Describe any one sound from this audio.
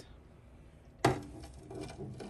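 A microwave door clicks open.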